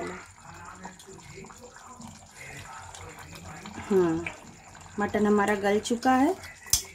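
A pot of stew bubbles softly.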